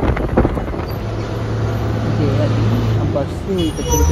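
A bus engine hums nearby.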